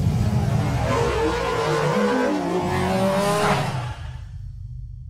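A car tyre screeches as it spins in place.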